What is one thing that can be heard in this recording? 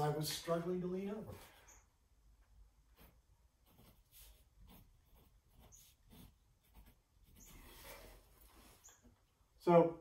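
A paintbrush scratches on a canvas.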